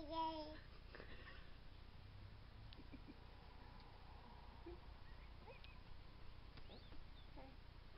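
A baby laughs.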